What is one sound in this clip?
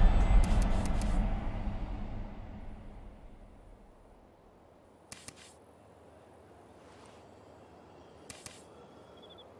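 Short soft clicks sound as menu items are selected.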